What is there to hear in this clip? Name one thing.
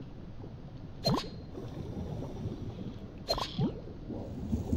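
A short game chime rings as an item is picked up.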